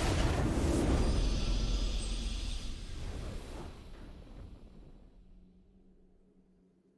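A triumphant victory fanfare swells and fades out.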